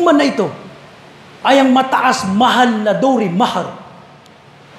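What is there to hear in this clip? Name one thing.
A man preaches loudly and with emphasis into a headset microphone, his voice echoing in a room.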